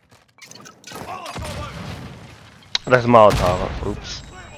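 An explosion bursts with a roar of flames.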